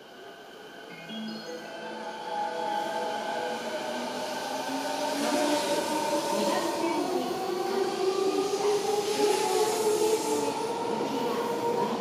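An electric train pulls away with a rising motor whine.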